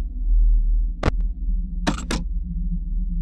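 A tablet clicks shut as it is lowered.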